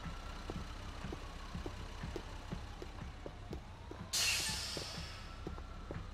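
Footsteps run steadily on pavement.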